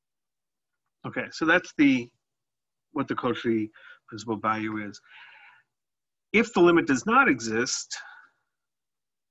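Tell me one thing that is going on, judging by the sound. A man speaks calmly through a microphone, in short phrases.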